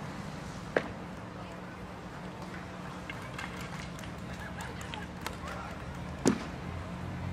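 Hockey sticks strike a ball with sharp clacks outdoors.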